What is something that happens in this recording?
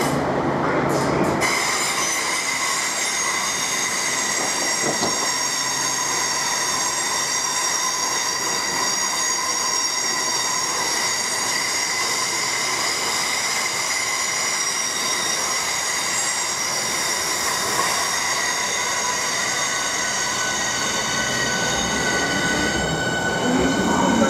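A train rumbles and clatters along the tracks.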